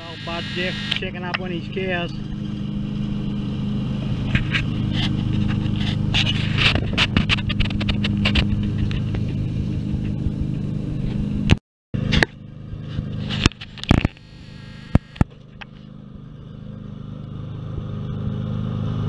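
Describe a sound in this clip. A ride-on lawn mower engine hums steadily nearby.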